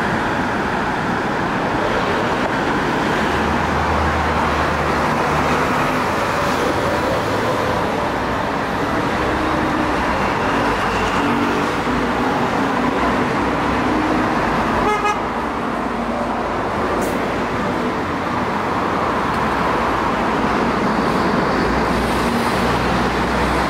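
A bus engine hums and drones as it drives past.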